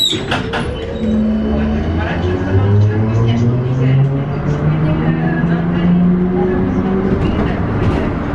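A tram's electric motor whines and hums as it speeds up.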